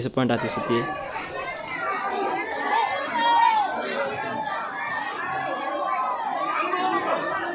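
A large crowd chatters and calls out loudly outdoors.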